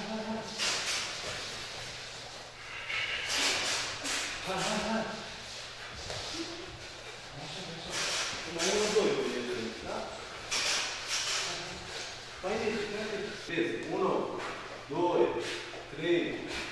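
A man calls out instructions loudly in an echoing room.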